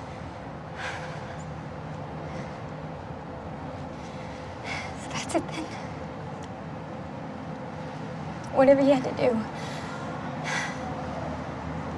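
A young woman speaks softly and tearfully up close.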